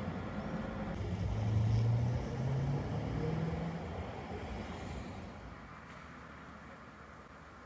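Low traffic noise rumbles steadily outdoors.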